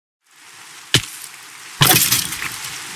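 A sword strikes a rattling skeleton.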